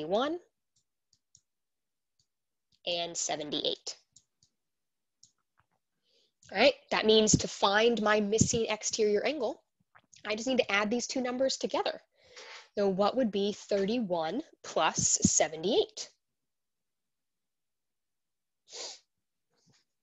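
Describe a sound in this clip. A young woman speaks calmly and explains close to a microphone.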